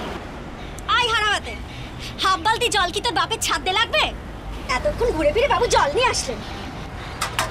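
A woman speaks sharply and with exasperation, close by.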